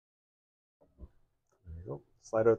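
A rocker switch clicks under a finger.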